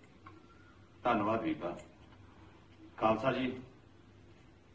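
A man speaks calmly in short phrases.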